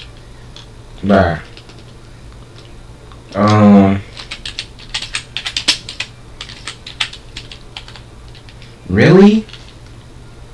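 A young man speaks in short, drawn-out bursts close to the microphone.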